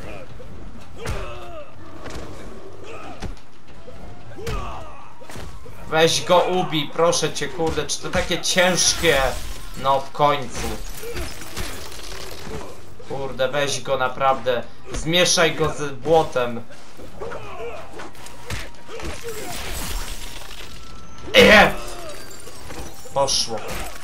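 Punches and kicks thud and smack in a fight.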